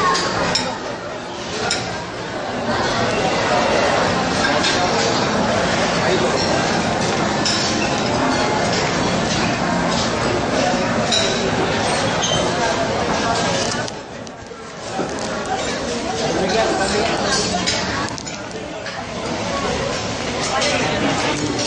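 A crowd chatters in a large, echoing hall.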